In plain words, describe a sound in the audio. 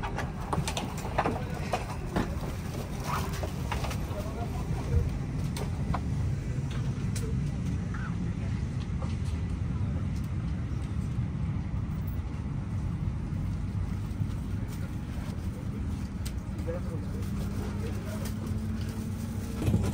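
A low, steady hum of an airliner cabin fills the space.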